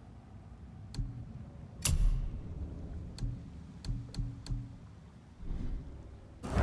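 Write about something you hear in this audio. Soft menu clicks tick now and then.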